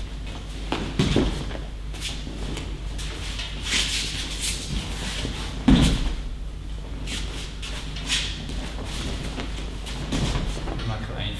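Bodies thud onto a padded mat in a large echoing hall.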